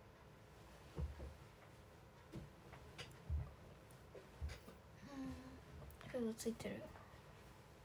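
Clothing rustles close by.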